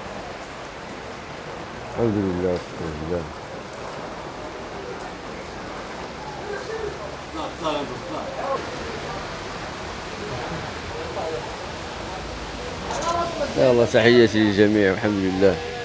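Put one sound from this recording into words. Heavy rain pours down steadily, pattering on glass.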